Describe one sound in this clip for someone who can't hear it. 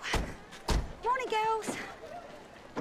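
A middle-aged woman shouts out loudly.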